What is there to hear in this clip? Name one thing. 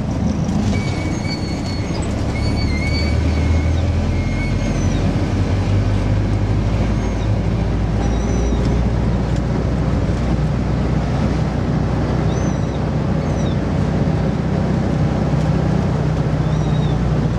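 Tyres roll on a road.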